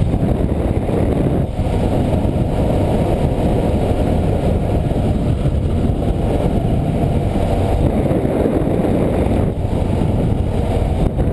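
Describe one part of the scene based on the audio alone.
Wind roars and buffets against a motorcycle rider's microphone.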